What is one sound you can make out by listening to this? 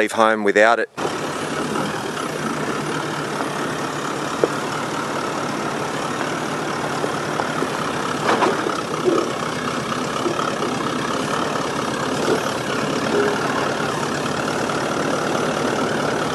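A vehicle engine rumbles steadily as it crawls slowly over rough ground.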